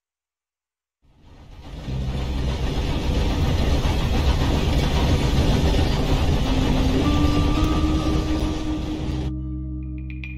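A steam train rumbles and chugs across a bridge.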